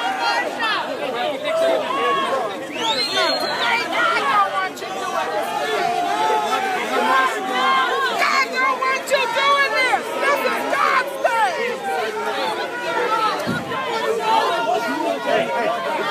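A crowd of men and women shout and argue loudly outdoors.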